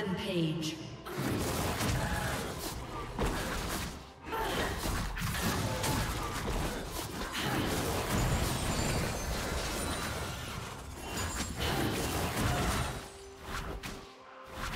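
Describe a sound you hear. Video game combat sounds and spell effects burst and clash.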